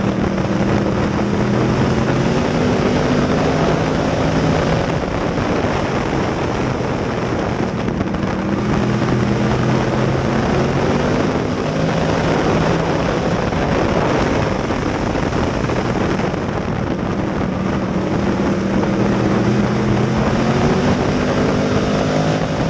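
A race car engine roars up close, revving up and down through the turns.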